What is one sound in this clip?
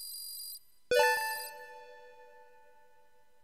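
A short electronic chime rings out and fades.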